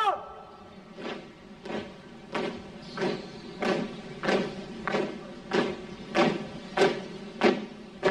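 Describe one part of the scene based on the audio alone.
Boots stamp in unison as troops march in step.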